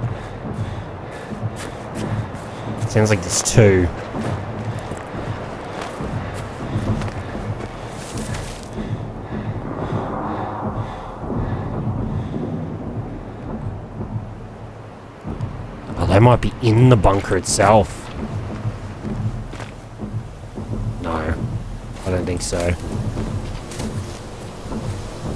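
Footsteps crunch over leaves and undergrowth.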